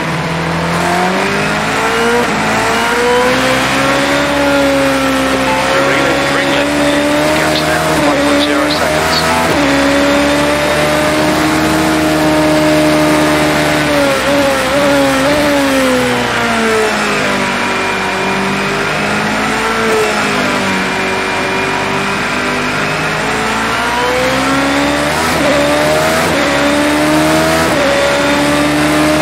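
A racing car engine whines loudly, rising and falling in pitch as the car speeds up and slows down.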